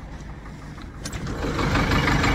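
A metal door creaks open.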